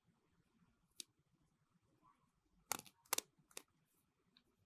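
A toothbrush's plastic handle taps lightly.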